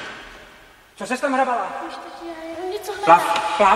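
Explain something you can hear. A young girl speaks loudly.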